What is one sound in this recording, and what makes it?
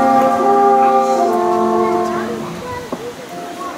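A small ensemble of instruments plays a sustained chord that fades away.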